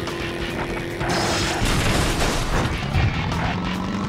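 An explosion bursts in a video game.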